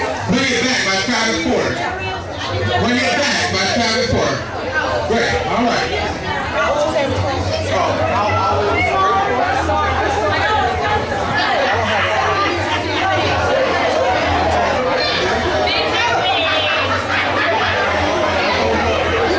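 A woman calls out through a microphone and loudspeaker in a large echoing room.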